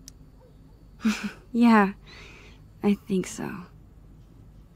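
A teenage girl replies softly.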